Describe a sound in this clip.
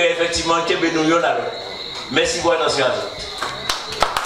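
An elderly man speaks into a microphone through a loudspeaker.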